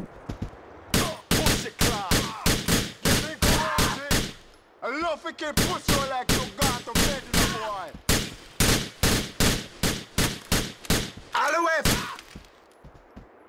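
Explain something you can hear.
Gunshots fire rapidly, one after another.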